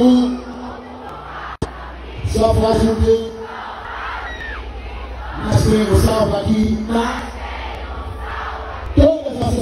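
A large crowd sings and cheers loudly outdoors.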